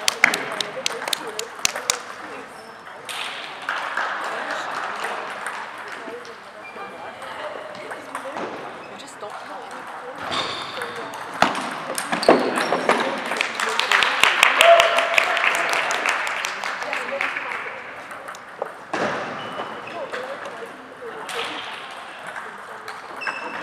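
A table tennis ball clicks sharply back and forth between paddles in a large echoing hall.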